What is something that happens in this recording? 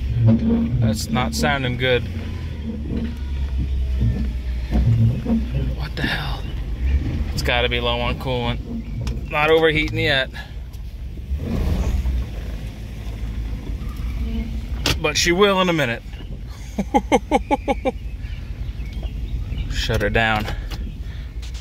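A car's steering squeals and whines in short bursts as the wheel is turned.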